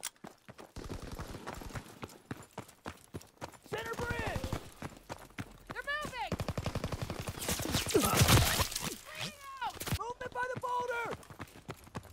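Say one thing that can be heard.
Footsteps run quickly over stone and gravel.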